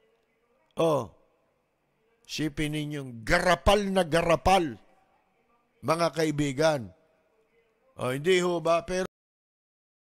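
A middle-aged man speaks into a microphone in short bursts with animation.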